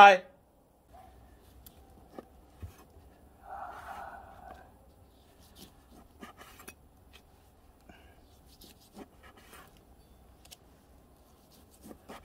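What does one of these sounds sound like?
A knife slices through meat on a wooden board.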